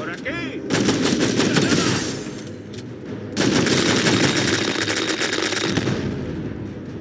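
Punches and heavy thuds land in a brawl.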